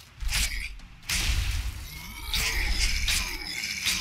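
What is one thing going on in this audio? Electric magic crackles and sizzles.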